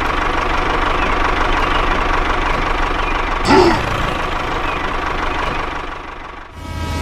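A small toy motor whirs as a toy tractor drives along.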